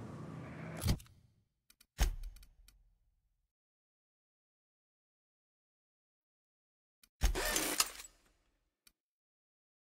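Short game menu clicks and swooshes sound as items are selected.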